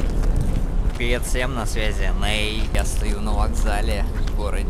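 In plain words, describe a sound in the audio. A young man talks to the microphone up close, outdoors.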